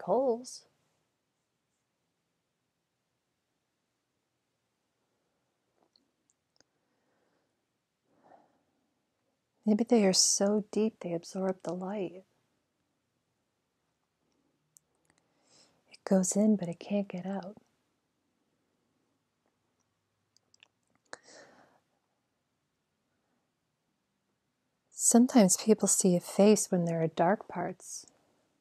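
A woman speaks calmly and close by, as if telling a story.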